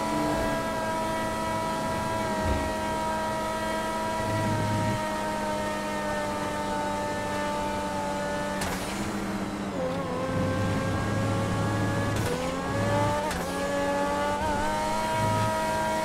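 A sports car engine roars at high revs, dropping briefly in pitch as it shifts gears.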